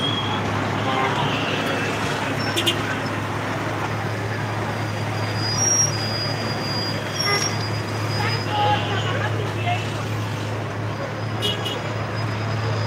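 Busy street traffic rumbles all around outdoors.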